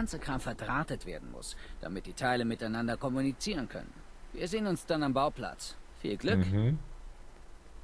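A man speaks calmly in a low voice.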